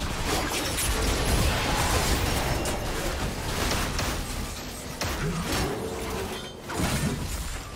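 Magic blasts and sword hits clash rapidly in a battle.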